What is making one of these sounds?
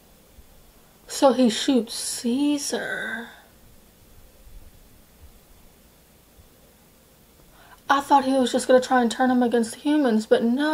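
A young woman speaks close to a microphone, sounding astonished and animated.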